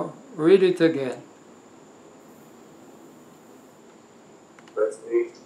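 An elderly man speaks calmly and slowly, close to a microphone.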